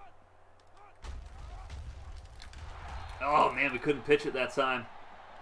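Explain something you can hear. Football players crash together in a tackle.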